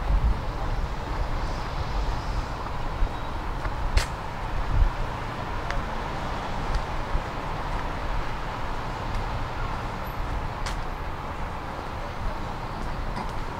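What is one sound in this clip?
Distant traffic hums steadily outdoors.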